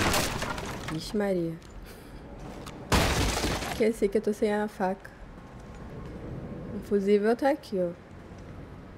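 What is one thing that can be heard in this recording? A young woman speaks briefly and with animation into a close microphone.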